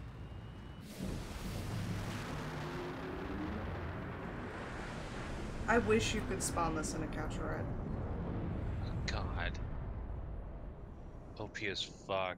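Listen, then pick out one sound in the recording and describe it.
A spaceship engine roars with a deep rumble and fades as the craft flies away.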